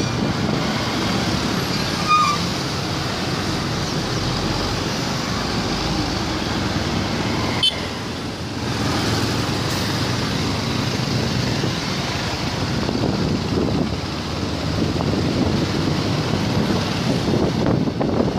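Cars and motorbikes drive along a busy road.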